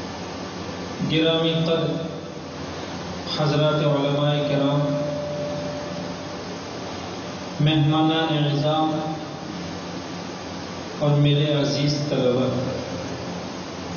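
A man chants in bursts through a microphone, echoing in a hall.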